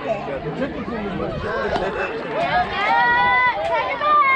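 A metal bat strikes a ball with a sharp ping.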